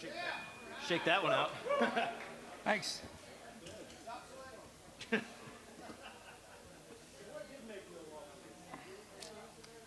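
A second man laughs and talks nearby.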